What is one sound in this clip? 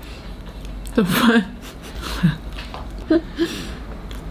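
A young woman hums with pleasure while eating.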